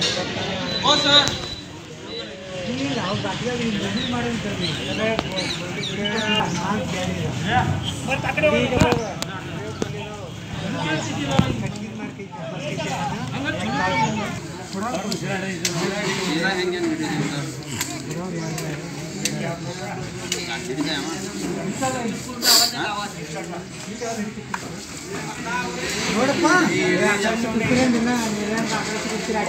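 Several men talk nearby outdoors, their voices overlapping.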